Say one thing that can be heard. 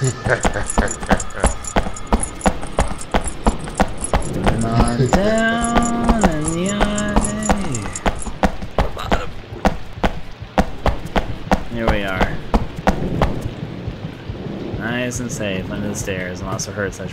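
Footsteps thud steadily on a hard floor, echoing slightly.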